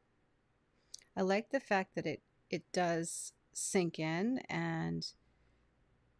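A woman speaks calmly, close up.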